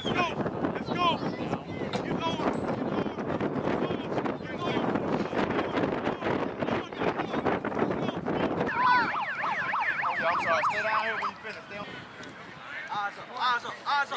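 Teenage boys chatter in a crowd outdoors.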